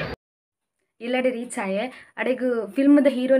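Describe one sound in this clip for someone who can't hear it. A young woman talks cheerfully close up.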